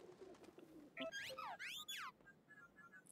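A small robot chirps with fast rising and falling electronic beeps.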